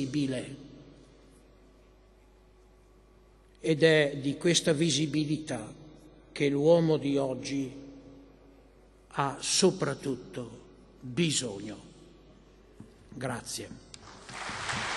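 An elderly man speaks calmly and slowly into a microphone, with long pauses.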